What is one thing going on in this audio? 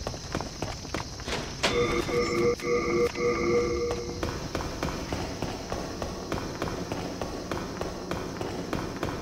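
Footsteps run quickly on a hard stone floor.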